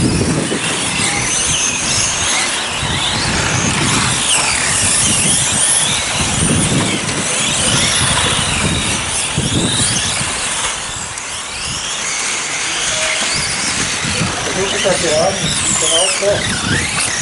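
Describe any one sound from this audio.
Small electric model cars whine at high speed as they race around a track.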